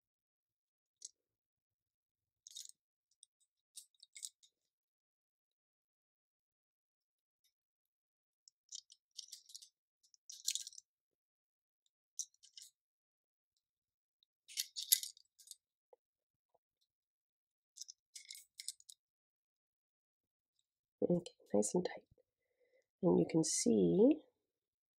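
Small metal parts click and scrape.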